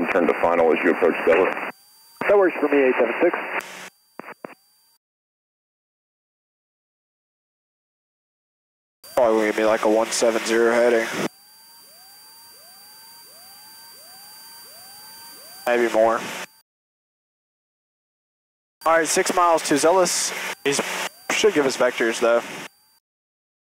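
A young man speaks calmly through a headset microphone.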